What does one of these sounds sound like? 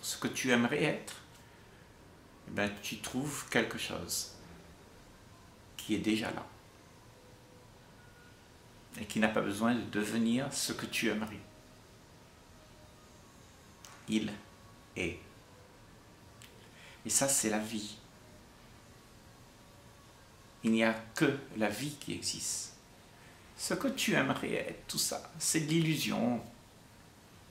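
An elderly man speaks calmly and close by, in short phrases with pauses.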